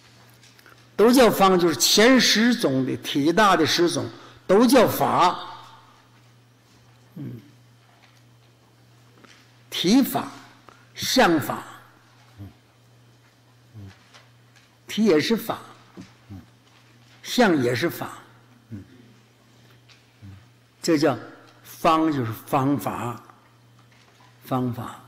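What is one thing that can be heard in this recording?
An elderly man speaks slowly and calmly into a microphone, with pauses between phrases.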